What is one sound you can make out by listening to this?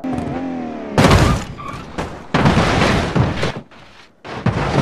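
A heavy crash booms and crunches.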